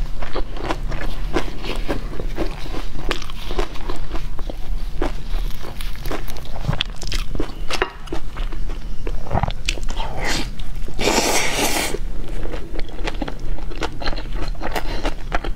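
A young woman chews wetly close to a microphone.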